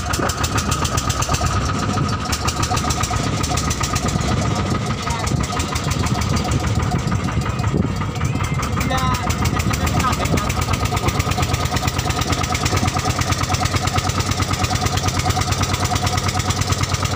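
A boat engine chugs steadily and loudly up close.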